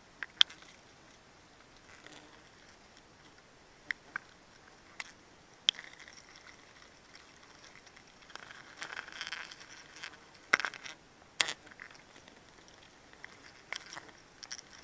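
Bees buzz around a honeycomb.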